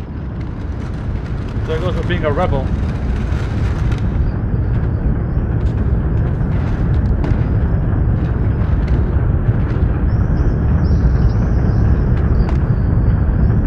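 A heavy wooden crate scrapes along the floor.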